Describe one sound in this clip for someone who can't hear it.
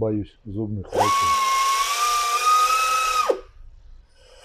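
A small power grinder whirs as it grinds rubber.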